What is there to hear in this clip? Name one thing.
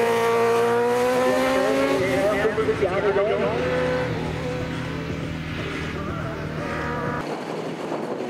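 A motorcycle engine roars loudly and fades as the bike speeds away.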